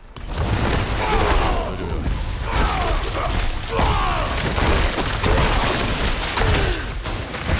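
Creatures shriek with falling cries during the fight.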